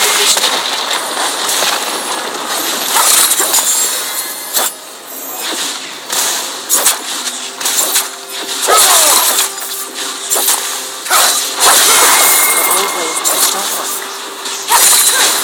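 Weapons clang and strike repeatedly in a game fight.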